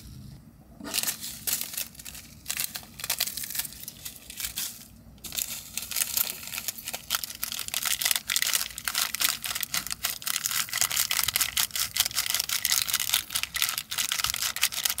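Dry food crackles and rustles as fingers crumble it into a bowl.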